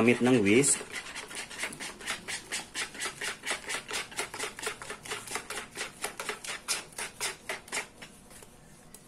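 A spatula stirs and scrapes thick batter in a bowl with quick, rhythmic strokes.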